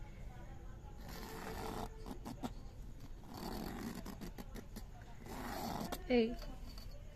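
A pencil scratches along a ruler on paper.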